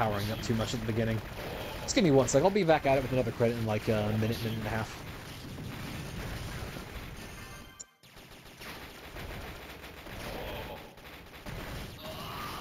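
Explosions burst one after another.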